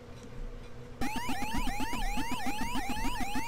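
An arcade game's siren warbles up and down in a fast, steady loop.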